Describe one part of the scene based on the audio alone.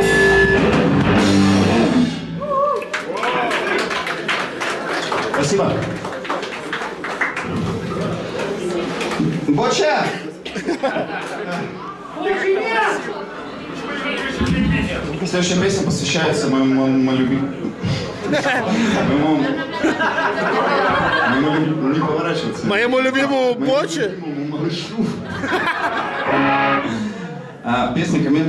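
An electric guitar plays through an amplifier.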